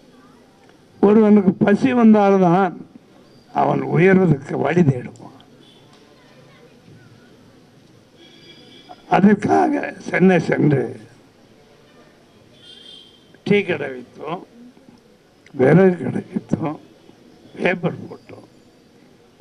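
An elderly man speaks into a microphone with emphasis, in short bursts with pauses.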